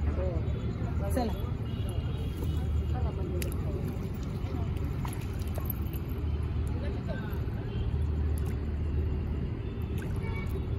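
Water laps gently against a stone edge.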